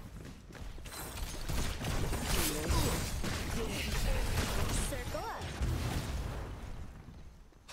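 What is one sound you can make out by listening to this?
Energy blasts and magic attacks crackle and boom in a fight.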